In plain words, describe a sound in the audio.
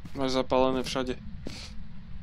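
A man speaks briefly and with animation into a close microphone.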